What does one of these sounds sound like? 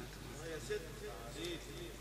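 A man recites in a melodic voice through a microphone.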